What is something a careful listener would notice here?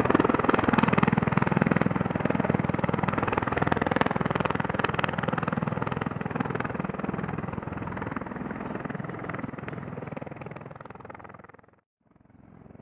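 Aircraft rotors thump and roar loudly and slowly fade into the distance.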